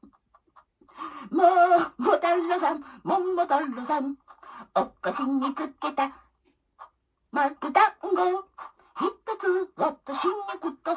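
An elderly woman sings loudly and closely into a small microphone.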